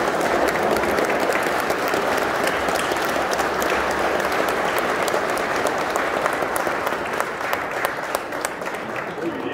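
A crowd of people claps steadily in a large echoing hall.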